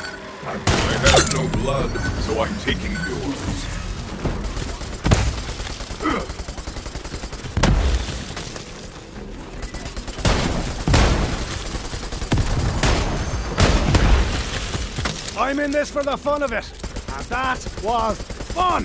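Guns fire in loud bursts.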